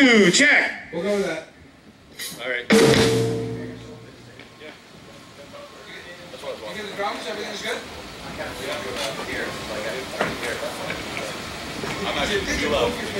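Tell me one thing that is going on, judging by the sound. Electric guitars play loudly outdoors.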